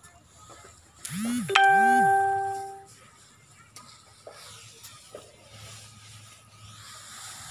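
An elephant rustles and munches dry grass close by.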